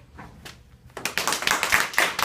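An older man claps his hands.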